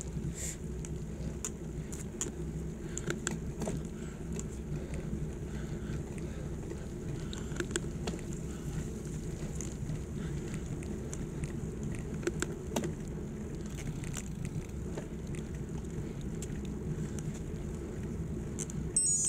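Wind rushes steadily past a cyclist riding fast downhill.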